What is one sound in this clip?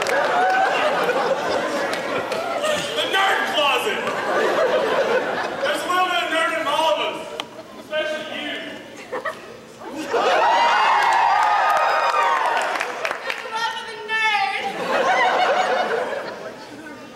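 Young people talk and call out loudly in a large echoing hall.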